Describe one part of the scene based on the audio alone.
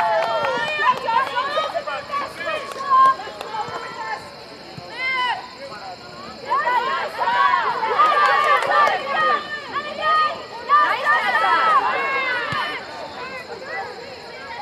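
Young women shout and cheer loudly outdoors.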